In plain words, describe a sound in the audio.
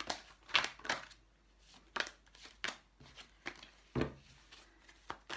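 Playing cards are shuffled and tapped by hand, with soft flicks and knocks.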